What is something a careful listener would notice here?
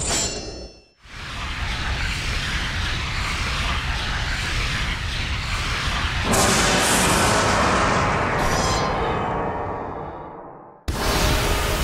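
A rushing, swelling roar builds and then fades away.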